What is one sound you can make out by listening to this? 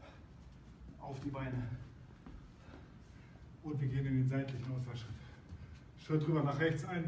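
A middle-aged man speaks to the listener.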